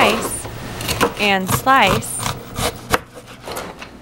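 A knife chops vegetables on a cutting board.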